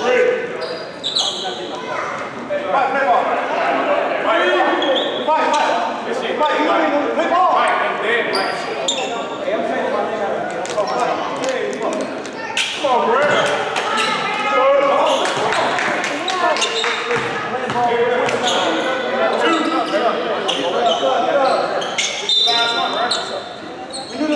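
Young men talk and call out across an echoing gym.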